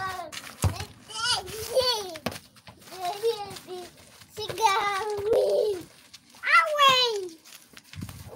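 A toddler squeals and babbles.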